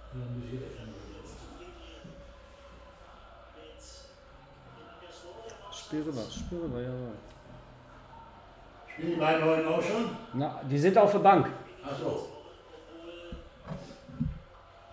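A second man speaks calmly close to a microphone.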